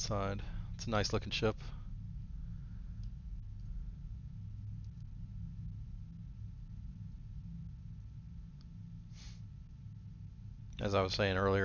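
A spacecraft's engines rumble low and steadily.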